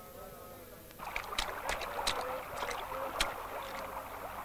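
A horse's hooves splash through a shallow stream.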